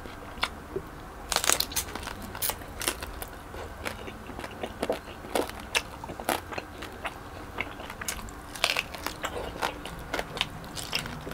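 A man chews crispy food loudly and wetly close to a microphone.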